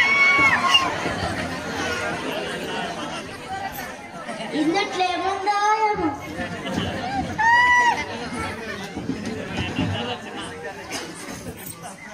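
A young man sings loudly into a microphone through loudspeakers.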